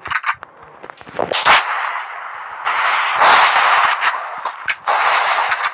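Gunshots crack sharply, one at a time.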